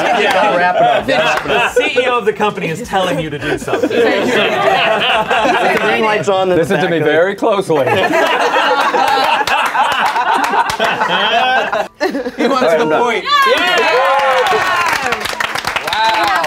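Several young men and women talk and laugh excitedly over one another, close by.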